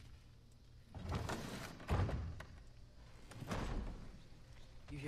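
A heavy wooden door swings open with a deep rumble.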